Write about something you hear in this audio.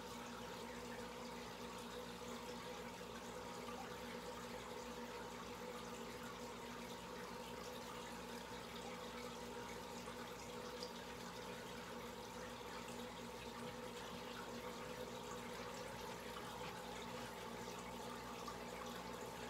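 Air bubbles stream and fizz in an aquarium.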